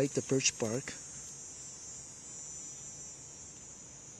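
A small fire of dry wood splints crackles.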